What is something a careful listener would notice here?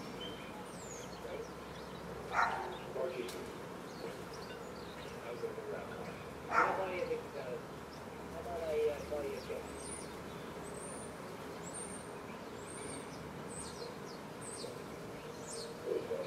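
Doves flap their wings as they take off.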